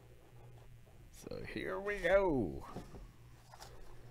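A box lid slides open with a soft scrape.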